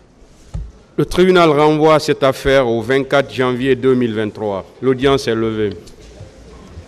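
A man speaks into a microphone in a firm, animated voice.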